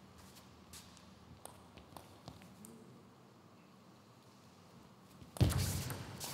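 A table tennis ball clicks back and forth on paddles and a table.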